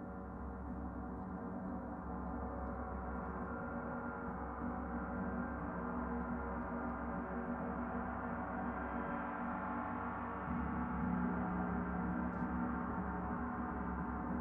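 A large gong hums with a deep, steady shimmering drone that swells as a soft mallet rubs it.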